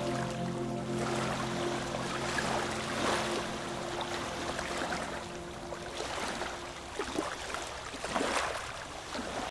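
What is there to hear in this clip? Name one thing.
Wind blows outdoors, rustling leaves.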